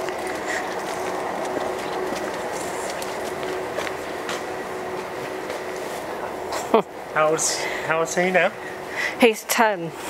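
Footsteps scuff along a paved sidewalk.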